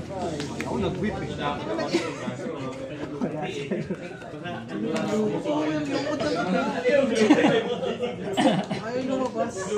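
Playing cards slide and slap softly as they are shuffled by hand.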